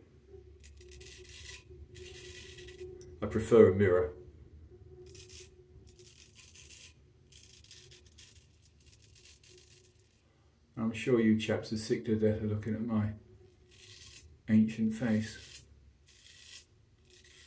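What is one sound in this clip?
A razor scrapes across stubble.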